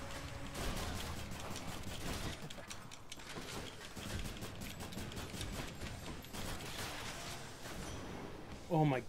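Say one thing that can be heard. Fast clashing and zapping combat sound effects play.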